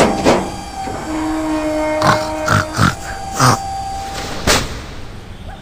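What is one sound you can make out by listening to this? A wooden cage rattles and bangs as it lifts open.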